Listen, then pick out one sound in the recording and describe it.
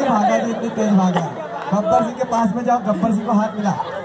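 A man speaks loudly through a microphone and loudspeaker.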